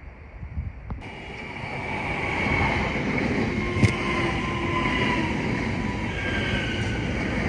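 A train rolls loudly into a station close by.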